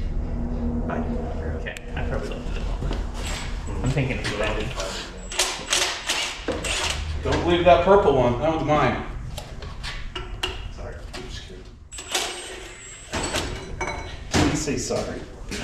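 A young man talks casually nearby.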